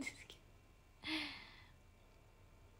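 A young woman laughs briefly.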